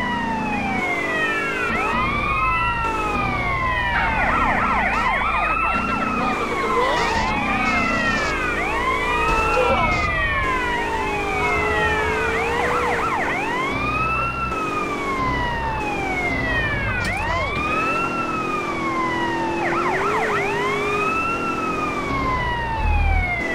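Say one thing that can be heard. Police sirens wail and sweep up and down throughout.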